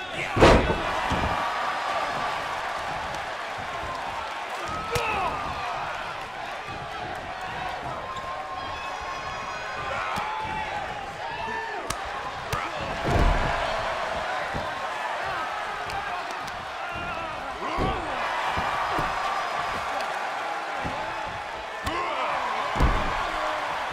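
Heavy bodies thud hard onto a wrestling mat.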